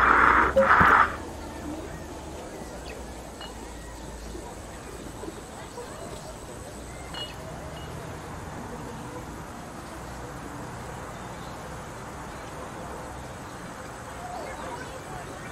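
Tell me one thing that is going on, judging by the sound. A glass jar rolls and rattles over a metal grate.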